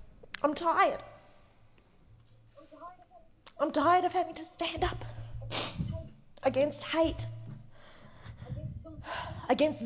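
A woman speaks with emotion into a microphone in a large hall.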